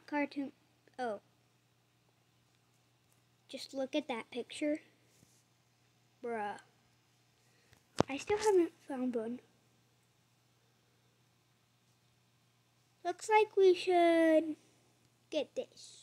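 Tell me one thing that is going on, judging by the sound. A young boy talks with animation, close to a microphone.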